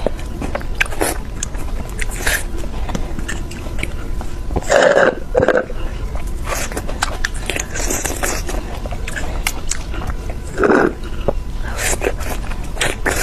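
A young woman slurps and sucks loudly through a straw close to a microphone.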